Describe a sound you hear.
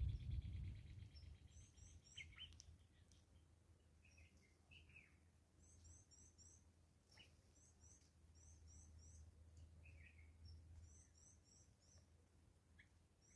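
Small birds peck at scattered seed on a wooden stump.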